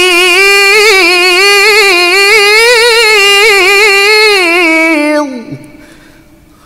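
A young man chants in a loud, long-held, wavering melody through a microphone.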